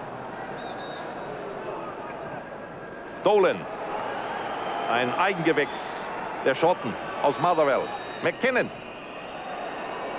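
A large stadium crowd murmurs and chants steadily in the distance.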